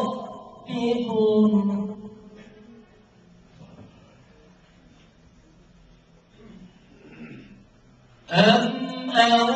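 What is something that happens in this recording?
A young man chants melodically into a microphone, with long held notes.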